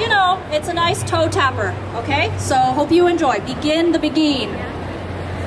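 A woman sings loudly through a microphone.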